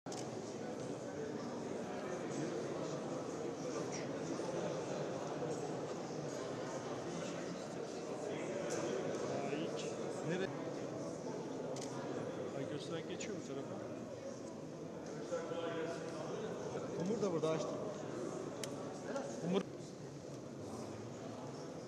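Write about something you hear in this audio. A crowd of people murmurs and chatters in a large echoing hall.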